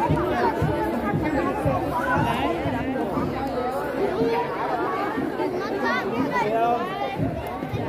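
A large crowd of men, women and children chatters all around, close by, outdoors.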